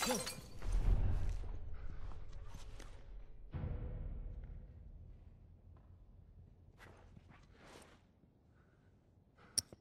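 Soft footsteps shuffle across a hard floor.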